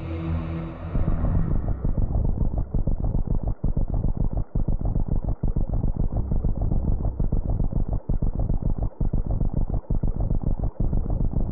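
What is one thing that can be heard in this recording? A video game monster crumbles apart with a loud, crackling rumble.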